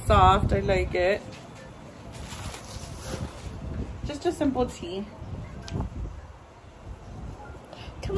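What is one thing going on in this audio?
Fabric rustles as a shirt is handled.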